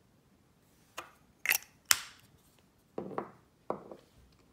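Small plastic cases click and tap against a wooden table.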